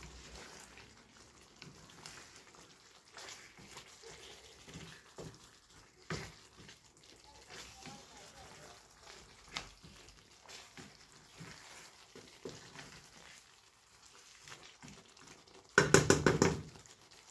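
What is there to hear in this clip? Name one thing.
A wooden spatula scrapes and stirs food in a metal pan.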